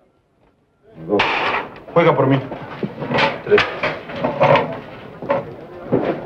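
Several men talk and laugh loudly at once.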